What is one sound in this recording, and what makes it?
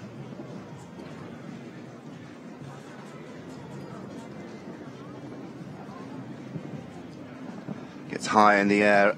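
A crowd murmurs in an open arena.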